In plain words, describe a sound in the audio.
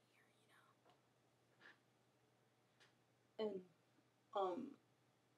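A young woman speaks in short bursts close to a microphone.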